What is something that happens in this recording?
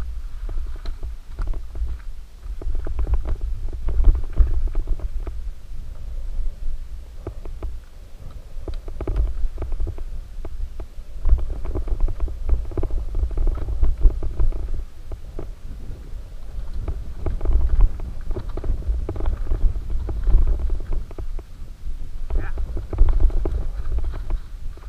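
Wind buffets a microphone with a low rumble outdoors.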